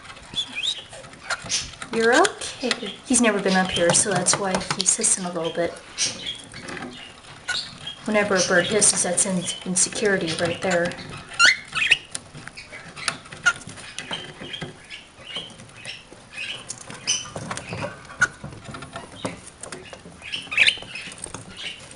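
A cockatiel whistles and chatters close by.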